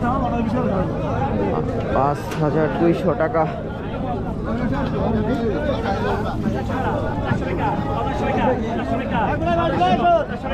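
A crowd of men talk loudly all around, close by and outdoors.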